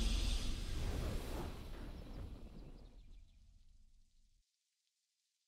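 A triumphant video game victory fanfare booms and slowly fades out.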